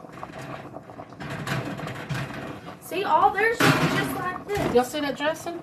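Metal utensils clink and scrape against a pan.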